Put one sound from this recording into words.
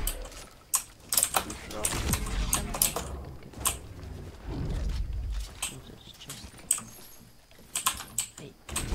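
Building pieces snap into place with sharp clicks in a video game.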